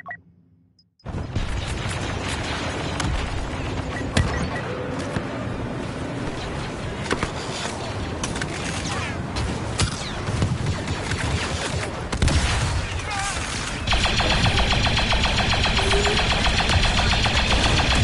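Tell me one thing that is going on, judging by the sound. Laser blasters fire in rapid bursts.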